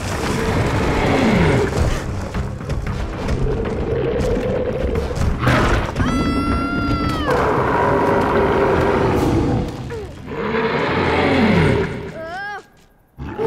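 A pulley whirs as a small figure slides down a rope line.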